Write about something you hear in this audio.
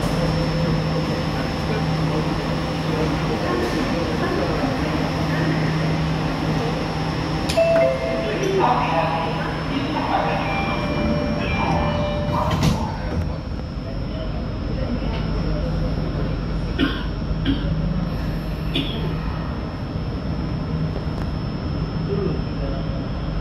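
A train hums steadily while standing.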